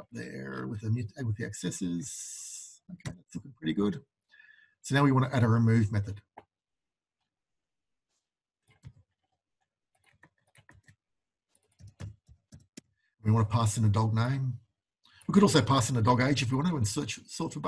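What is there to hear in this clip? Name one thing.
A man speaks calmly into a close microphone, explaining in bursts with pauses.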